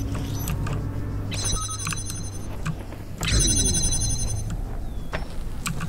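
A laser beam hums steadily.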